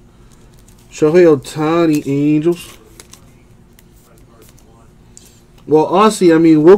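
Trading cards slide and rustle between fingers.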